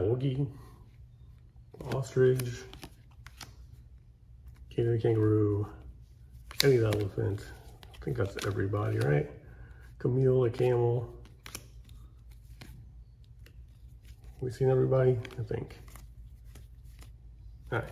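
Playing cards rustle and slide between fingers.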